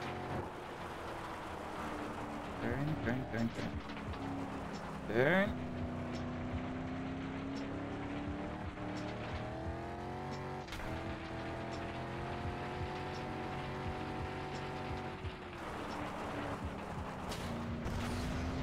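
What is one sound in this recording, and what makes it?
Tyres crunch and skid on a gravel track.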